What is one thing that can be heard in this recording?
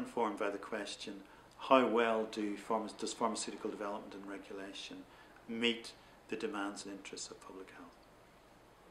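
A middle-aged man speaks calmly and thoughtfully close to a microphone.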